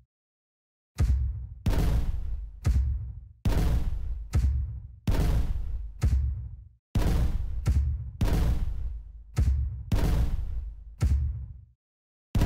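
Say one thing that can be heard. A cannon fires with deep booms at a steady pace.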